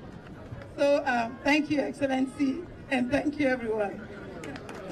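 A man speaks loudly through a loudspeaker, with an echo.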